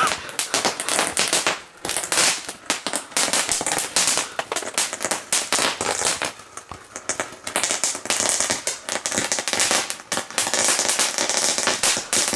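Fireworks crackle and pop rapidly.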